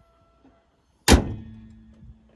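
A car hood slams shut.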